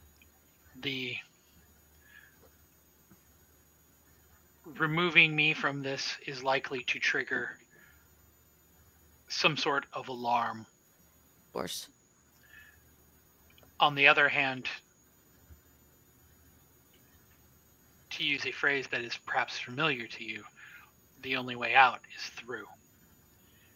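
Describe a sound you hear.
A man talks with animation over an online call, in bursts with pauses.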